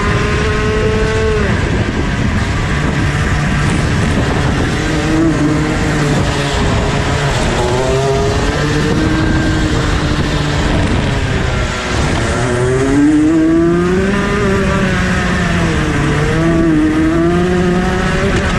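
A kart engine revs loudly up and down close by.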